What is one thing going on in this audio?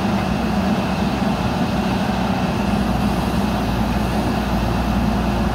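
A backhoe loader's diesel engine rumbles steadily close by.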